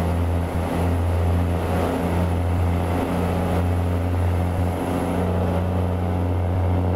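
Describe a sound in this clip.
A heavy truck engine drones steadily.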